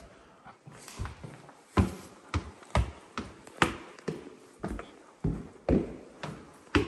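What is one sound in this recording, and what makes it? Footsteps thump steadily up wooden stairs.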